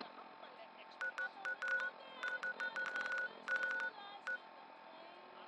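Short electronic beeps and clicks sound in quick bursts.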